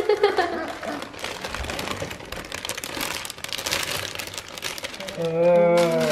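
A plastic bag crinkles as lettuce is tipped into a bowl.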